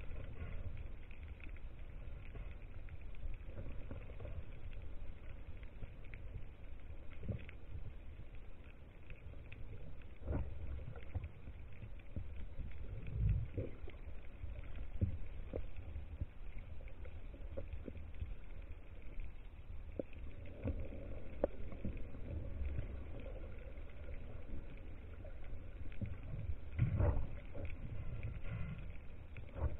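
Water rumbles in a low, muffled murmur underwater.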